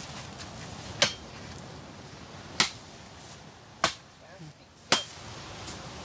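A wooden stick strikes the ground in sharp knocks.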